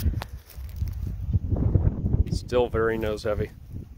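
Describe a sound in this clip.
A light toy plane thuds onto dry grass.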